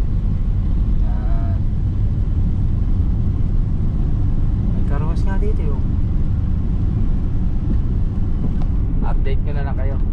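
A car engine rumbles steadily while driving along a road.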